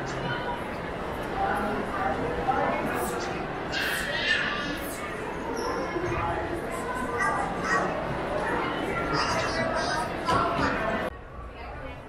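A crowd of adults and children chatter in a large echoing hall.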